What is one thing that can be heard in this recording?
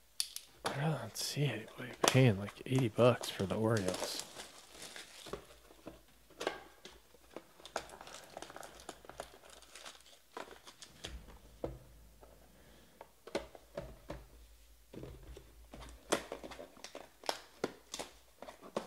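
Card wrappers and boxes rustle and tap as hands handle them.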